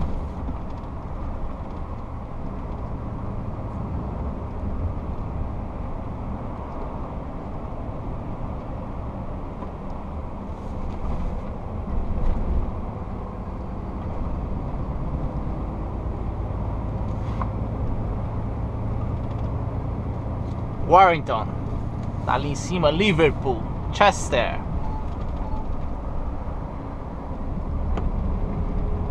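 Tyres roar steadily on a motorway.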